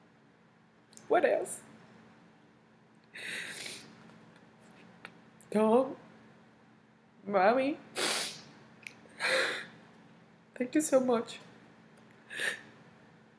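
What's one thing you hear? A young woman sobs and sniffles, close to a microphone.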